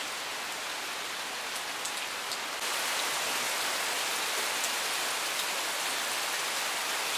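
Steady rain patters on leaves and gravel outdoors, growing heavier partway through.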